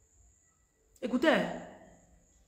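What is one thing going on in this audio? A woman speaks calmly close to the microphone.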